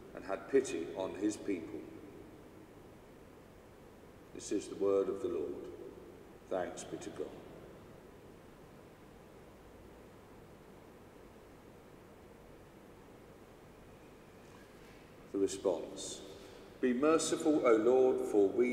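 A man speaks slowly and calmly into a microphone in a large echoing hall, with long pauses.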